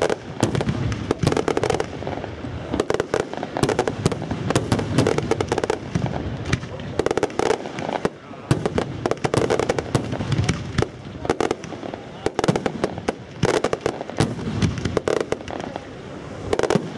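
Firework rockets bang loudly overhead.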